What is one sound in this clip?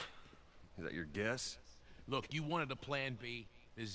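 A deep-voiced man replies in a low, dry voice.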